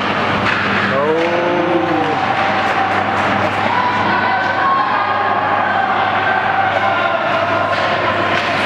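Ice skates scrape and carve across a rink.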